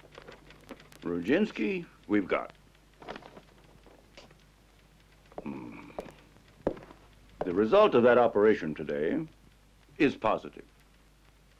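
A man speaks in short, calm phrases in a quiet room.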